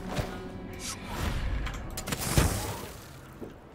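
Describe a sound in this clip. A magical energy whoosh surges and then fades away.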